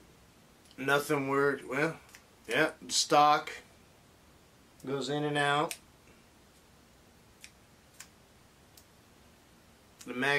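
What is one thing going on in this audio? Small plastic parts click faintly as a man handles a toy rifle.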